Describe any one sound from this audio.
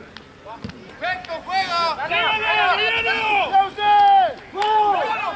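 Spectators close by shout and cheer loudly.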